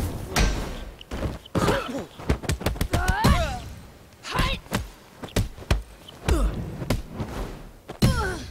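Heavy punches and kicks thud in quick succession.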